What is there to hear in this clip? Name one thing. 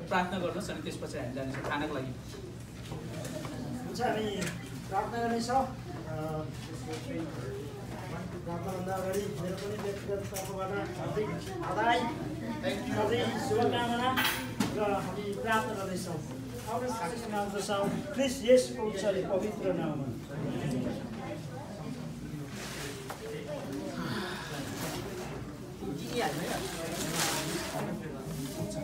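Many people chatter around a crowded room.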